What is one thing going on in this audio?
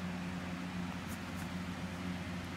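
A plastic case clicks and rattles as a hand turns it over.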